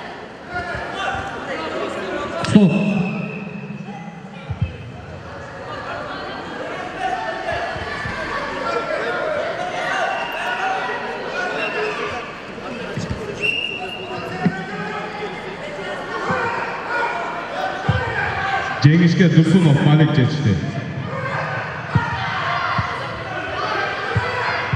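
Feet shuffle and thump on a padded mat.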